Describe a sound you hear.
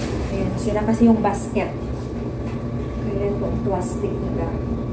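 A dryer door bangs shut with a metallic clunk.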